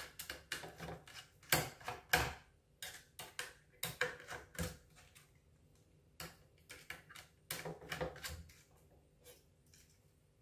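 A screwdriver clicks and scrapes against small metal screws.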